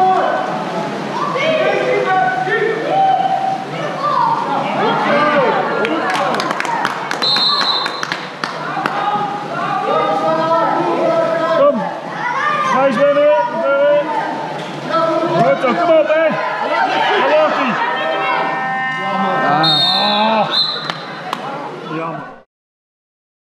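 People shout and cheer in a large echoing hall.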